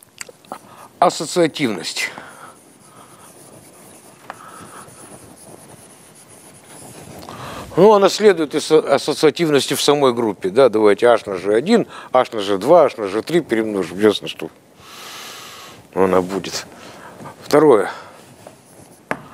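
An older man speaks with animation.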